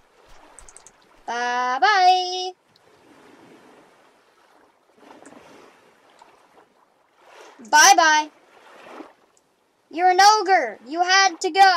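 Gentle waves lap against a sandy shore.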